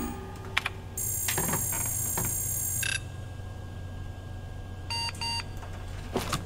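A computer beeps with high electronic tones.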